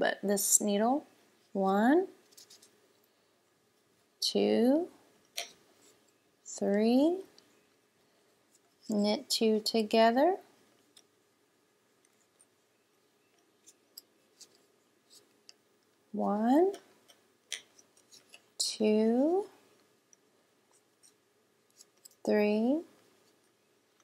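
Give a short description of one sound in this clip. Wooden knitting needles click and tap softly.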